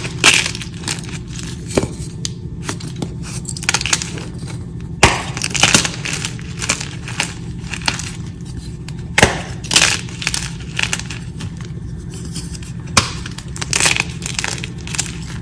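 Chalk crumbs patter down onto a pile.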